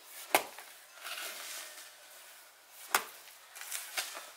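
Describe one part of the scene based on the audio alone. Hoe blades scrape and rustle through dry straw and dirt.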